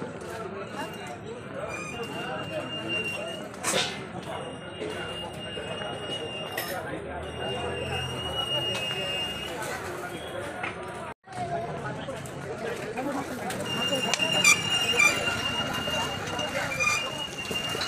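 A busy crowd chatters all around outdoors.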